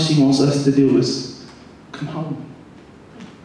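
A young man speaks into a microphone.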